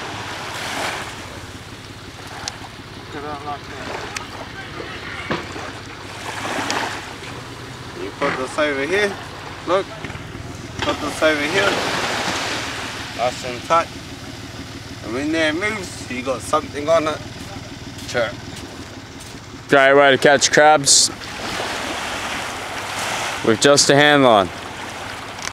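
Small waves lap gently on a sandy shore.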